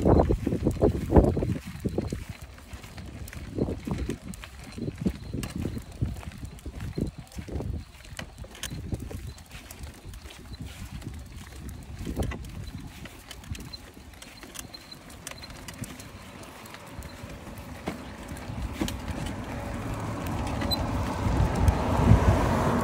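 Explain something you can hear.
Small plastic wheels rumble and rattle over a concrete footpath.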